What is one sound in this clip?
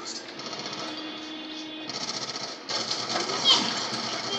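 Rapid gunfire crackles from a television speaker.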